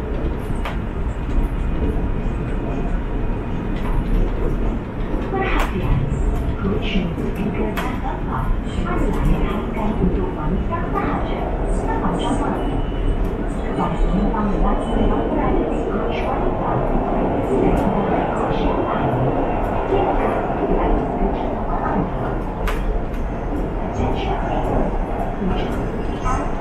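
A train car rumbles and rattles steadily along the tracks.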